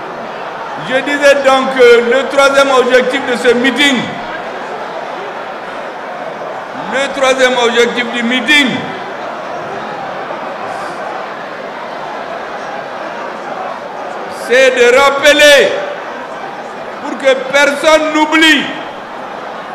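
A man gives a speech loudly and forcefully through a microphone and loudspeakers, with long pauses between phrases.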